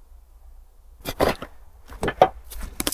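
Dry leaves crunch underfoot as someone walks through the woods.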